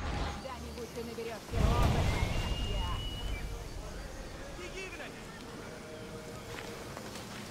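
Footsteps tread softly on grass and stone.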